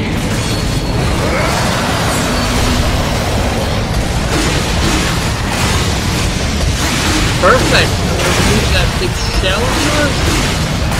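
Blades slash and strike repeatedly in a fierce fight.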